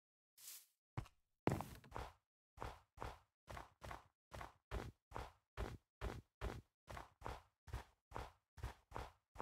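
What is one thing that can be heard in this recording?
Footsteps crunch steadily on snow.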